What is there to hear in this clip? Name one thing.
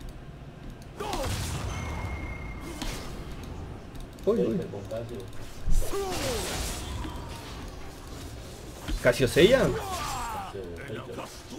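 Magic spells burst with whooshing blasts.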